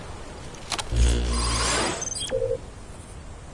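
An electronic device beeps and chirps.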